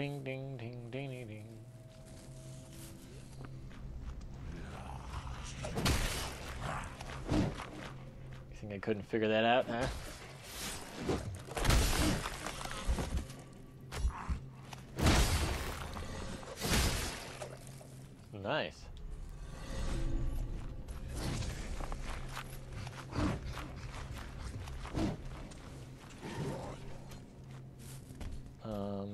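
Footsteps run over stone and gravel.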